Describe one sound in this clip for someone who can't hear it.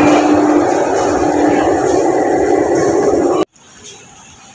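A train rushes past with a loud roar.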